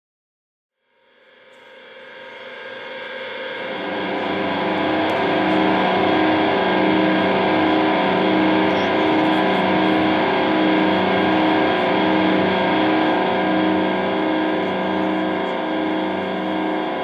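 An electric guitar plays loud, sustained chords that swell in from silence.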